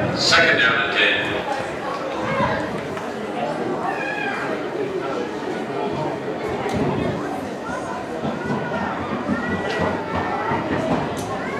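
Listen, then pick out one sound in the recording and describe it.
A crowd of spectators talks and cheers outdoors nearby.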